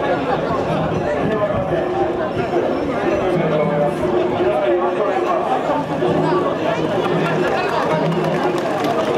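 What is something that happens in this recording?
A large crowd of men chants and shouts loudly together outdoors.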